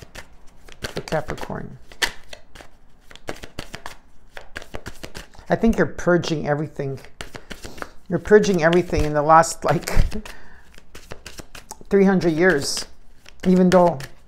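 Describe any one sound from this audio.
Cards riffle and slap as they are shuffled.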